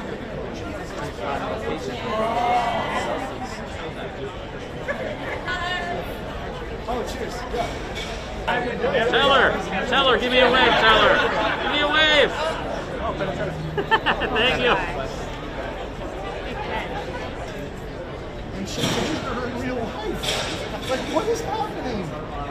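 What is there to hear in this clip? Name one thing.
A crowd chatters nearby.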